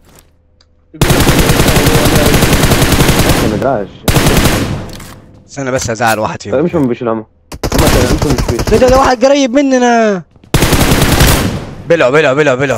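Rapid rifle fire bursts out in a video game.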